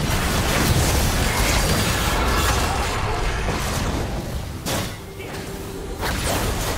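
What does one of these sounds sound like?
Magic blasts and sword clashes ring out in a busy fight.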